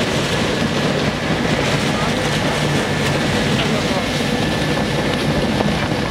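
A shredder grinds and crunches metal scraps with a loud steady roar.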